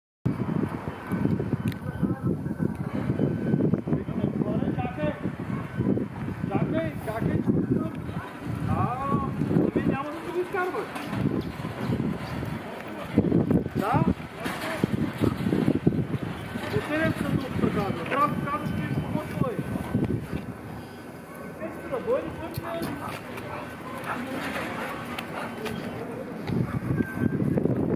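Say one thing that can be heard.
A man talks calmly to a dog close by.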